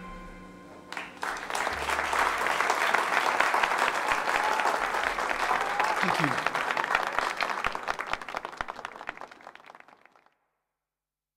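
An audience claps loudly, then the applause slowly fades away.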